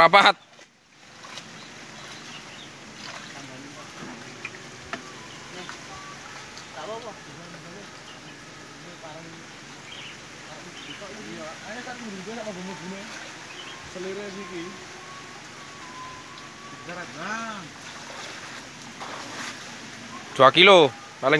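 Young men talk nearby outdoors.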